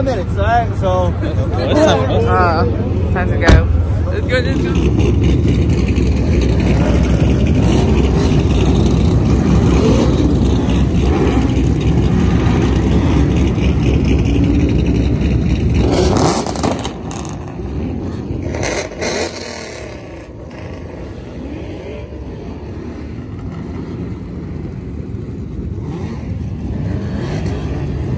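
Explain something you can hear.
Car engines rumble as cars roll slowly past.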